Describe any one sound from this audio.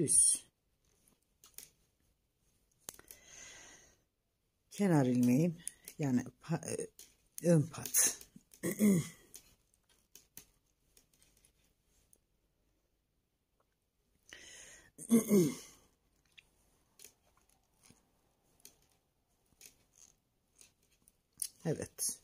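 Knitting needles click and tick softly.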